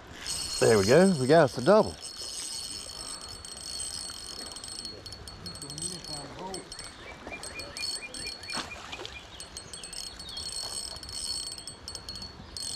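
Calm river water laps gently.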